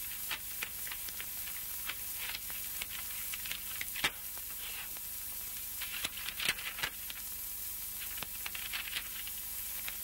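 Paper rustles as it is handled.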